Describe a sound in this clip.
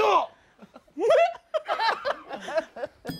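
A heavyset man laughs loudly.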